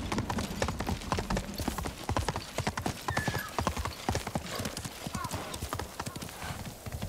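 A horse gallops over stone, its hooves clattering quickly.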